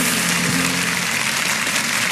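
A jazz band plays a final chord.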